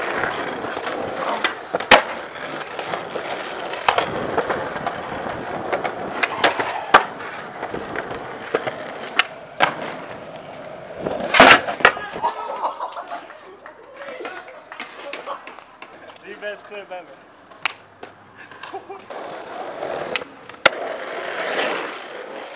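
Skateboard wheels roll and rumble on pavement.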